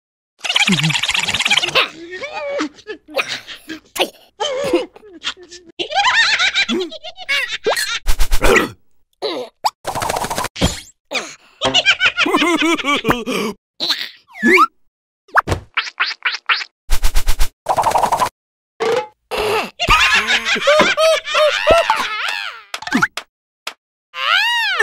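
Cartoon creatures chatter and squeal in high, squeaky voices.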